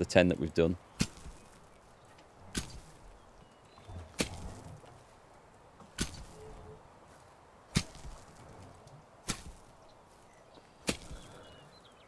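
A shovel strikes the ground with sharp thuds.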